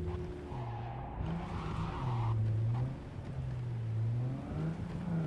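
Tyres screech on wet pavement.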